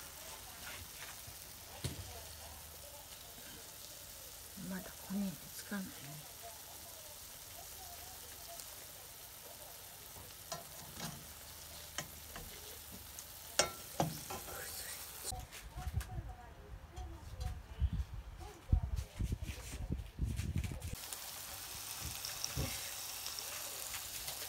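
Patties sizzle steadily in a frying pan.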